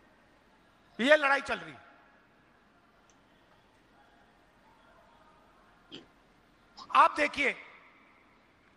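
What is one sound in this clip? A middle-aged man speaks forcefully into a microphone over a loudspeaker, in short bursts with long pauses.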